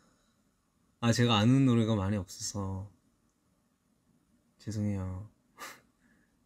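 A young man speaks softly and playfully close to a microphone.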